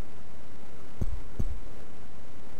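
A bat strikes a ball with a short, dull thump.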